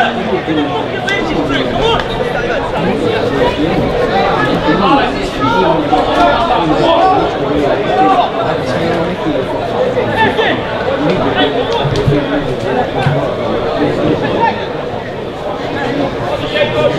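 A crowd of spectators chatters steadily nearby.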